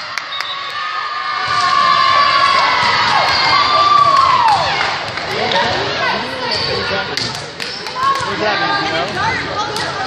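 A crowd of girls cheers and shouts loudly in an echoing gym.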